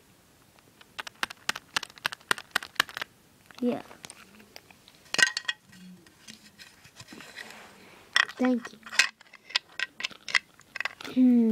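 Small plastic toys click and tap against each other.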